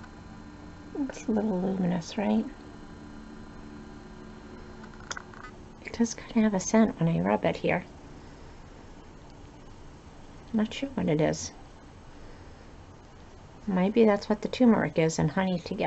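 An older woman speaks calmly and close to a microphone, in short bursts with pauses.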